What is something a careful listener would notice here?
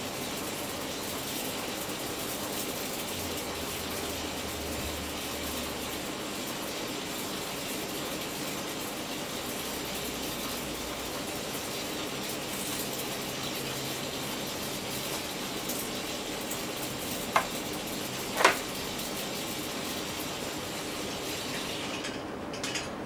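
A faulty display hisses and crackles steadily with electrical noise.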